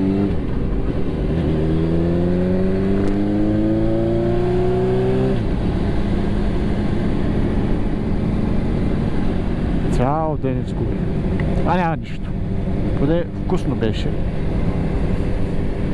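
Wind rushes steadily past the rider.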